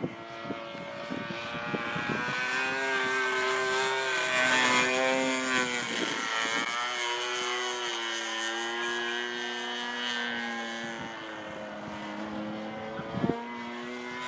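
A small engine whines steadily overhead, its pitch rising and falling as a plane passes.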